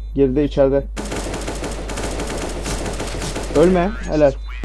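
An assault rifle fires a rapid burst of shots.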